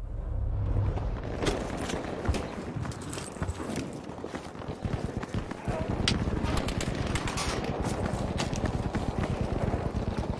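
Footsteps run on stone pavement.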